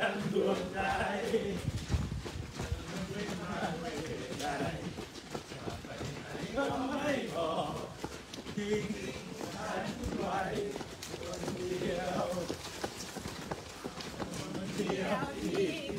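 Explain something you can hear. A group of runners' footsteps patter steadily on pavement.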